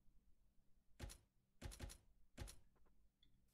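Menu buttons click softly a few times.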